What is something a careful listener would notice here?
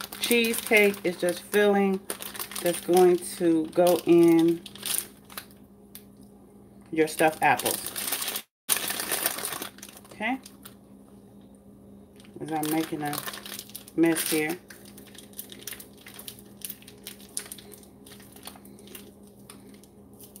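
A plastic piping bag crinkles as it is handled and squeezed.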